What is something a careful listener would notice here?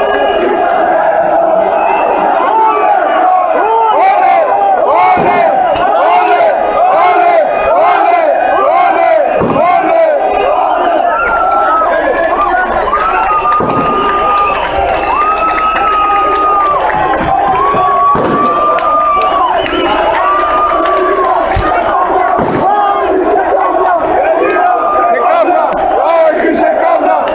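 Firecrackers bang sharply.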